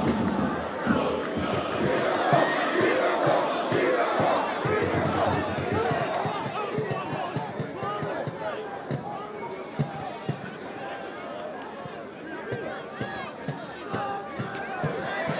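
A stadium crowd murmurs and chants throughout, louder at first and then easing off.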